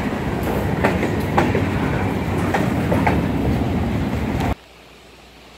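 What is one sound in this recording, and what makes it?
A freight train rumbles and clatters past close by, its wheels clicking on the rails.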